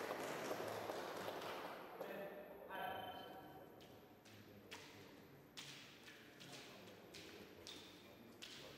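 Fencers' shoes squeak and tap on the floor.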